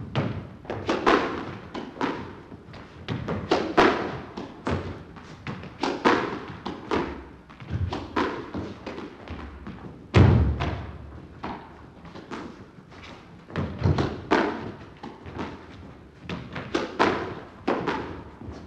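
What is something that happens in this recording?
A squash ball smacks sharply against the walls and rackets in a rapid, echoing rally.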